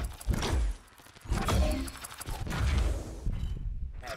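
Game cards flip over with whooshing reveal sounds.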